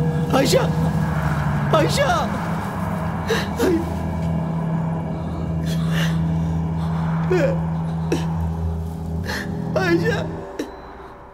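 A man sobs and cries out in anguish close by.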